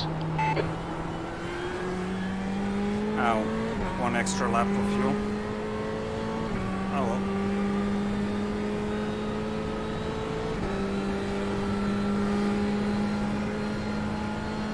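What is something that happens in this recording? A racing car engine drones steadily, shifting up through the gears.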